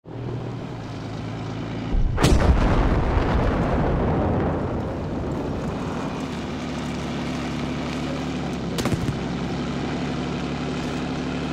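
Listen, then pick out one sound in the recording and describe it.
Tank tracks clank and squeak over snow.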